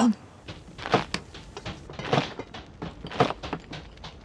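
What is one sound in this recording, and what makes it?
A knife chops on a wooden board with sharp, quick knocks.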